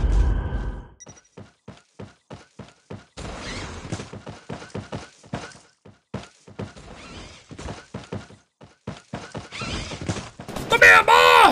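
Footsteps thud quickly and evenly.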